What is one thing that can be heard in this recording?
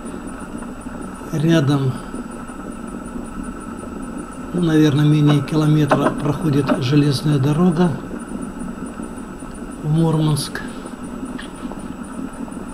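Light rain patters on a car windscreen.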